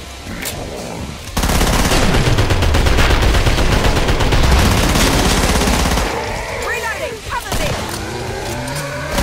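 Creatures shriek and growl.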